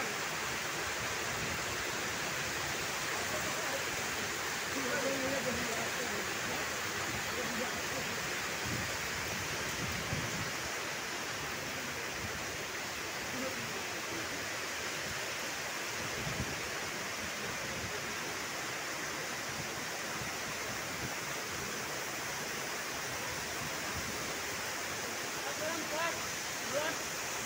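Heavy rain pours down on trees outdoors.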